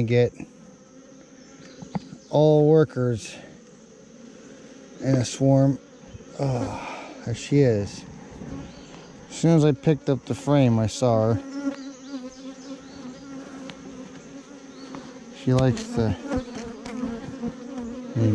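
Bees buzz in a steady, low drone close by.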